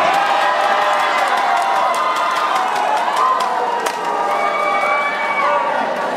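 Young women players shout and cheer together.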